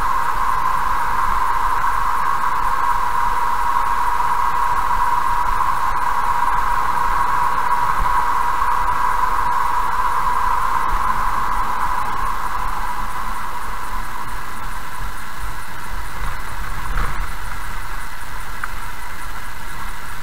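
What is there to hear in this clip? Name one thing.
A car drives along a road, growing quieter as it slows down.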